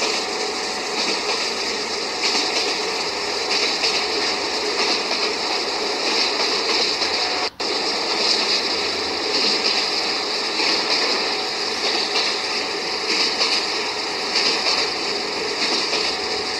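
A train engine rumbles steadily as it rolls along the rails.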